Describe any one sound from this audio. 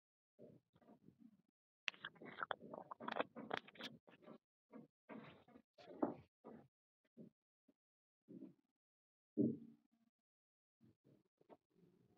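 Dice rattle briefly as they are rolled.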